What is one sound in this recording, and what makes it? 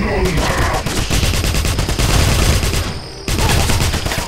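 An automatic gun fires rapid bursts of shots.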